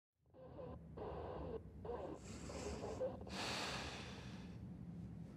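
A young woman breathes heavily as she wakes.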